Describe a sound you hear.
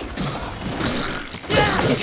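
Metal weapons clang together in a fight.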